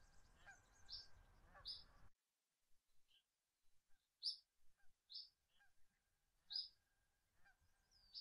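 A cricket chirps in short, repeated bursts.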